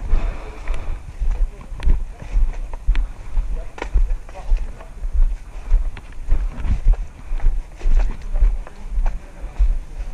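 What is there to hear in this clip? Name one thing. Footsteps crunch steadily on dry leaves and twigs.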